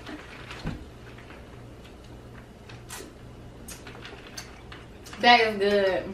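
A woman and a girl slurp a drink through straws.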